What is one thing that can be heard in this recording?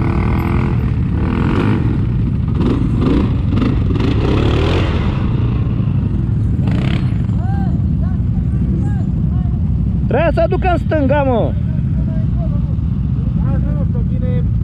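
A quad bike engine rumbles and revs close by.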